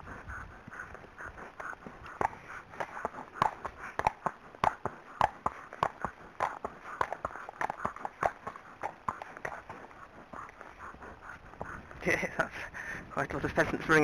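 A horse's hooves clop steadily on a paved lane.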